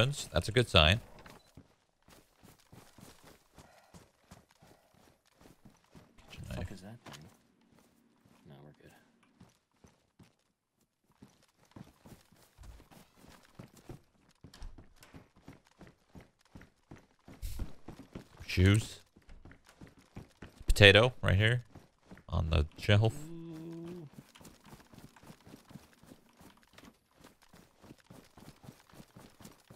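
Footsteps tap steadily on the ground.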